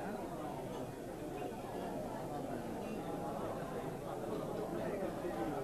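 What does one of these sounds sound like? A crowd of men and women chatters in a busy room.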